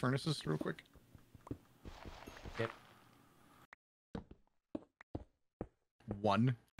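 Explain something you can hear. A pickaxe chips at stone with quick, dull knocks.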